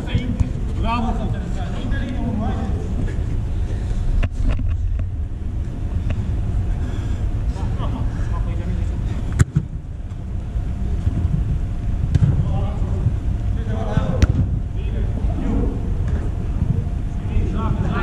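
Men playing football call out to each other in an echoing air dome.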